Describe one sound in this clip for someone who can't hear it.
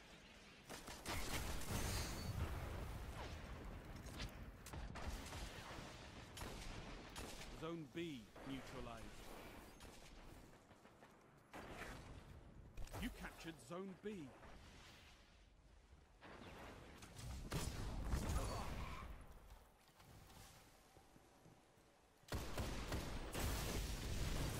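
Gunfire from a game's weapons cracks in quick bursts.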